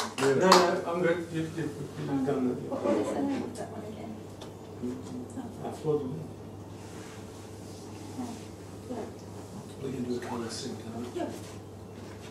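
A middle-aged man speaks casually nearby.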